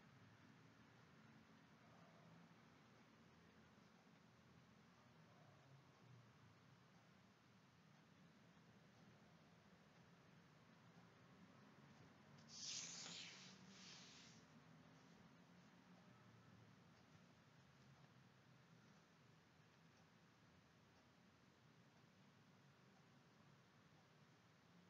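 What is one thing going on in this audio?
A brush softly strokes across paper.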